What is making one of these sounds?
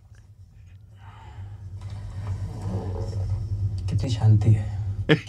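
A man talks with amusement close to a microphone.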